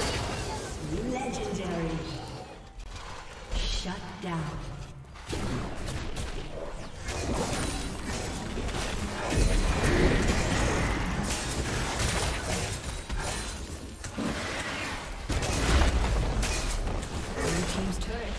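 Magic blasts and sword hits clash rapidly in a fantasy battle.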